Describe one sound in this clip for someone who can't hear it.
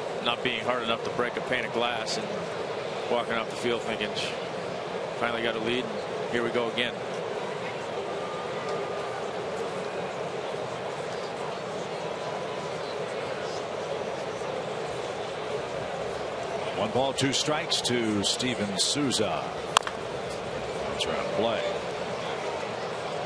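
A stadium crowd murmurs steadily in a large open space.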